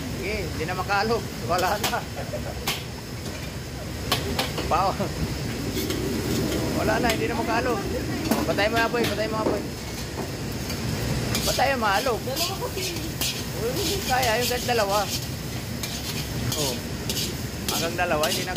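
A metal ladle scrapes and clanks against a wok.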